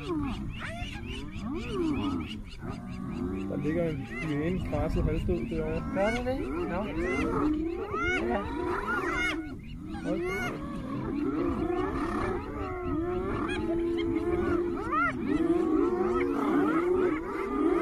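A lion growls and snarls.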